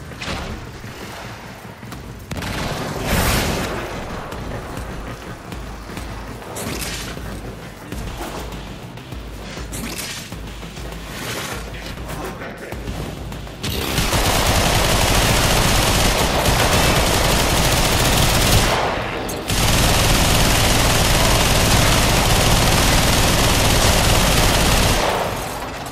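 Guns fire in rapid bursts with loud energy blasts.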